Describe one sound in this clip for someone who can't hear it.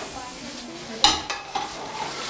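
A metal pot clatters.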